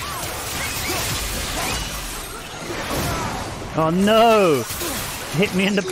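Flames whoosh and roar in bursts.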